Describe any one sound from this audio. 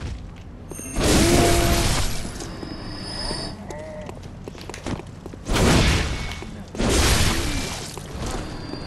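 Blades slash through the air and strike with heavy thuds.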